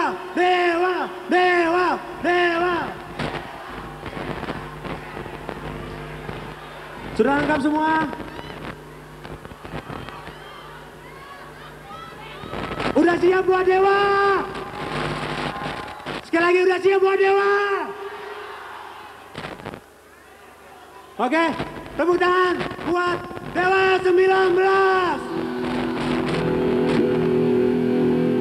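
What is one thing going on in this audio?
A huge crowd chants and roars back.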